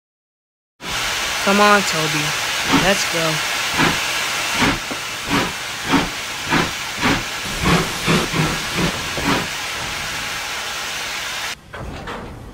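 A steam engine chuffs with a steady rhythm.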